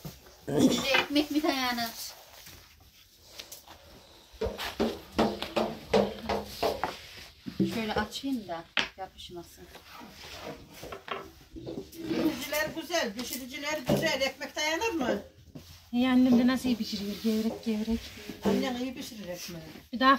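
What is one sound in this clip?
A rolling pin rolls and taps on a wooden board.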